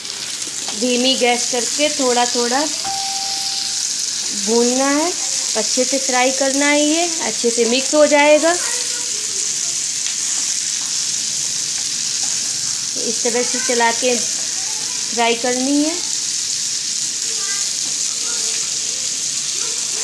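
Food sizzles steadily as it fries in a pan.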